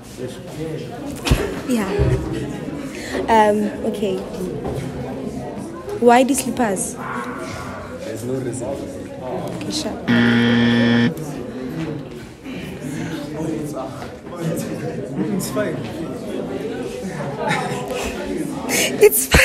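A group of young people laughs and cheers around them.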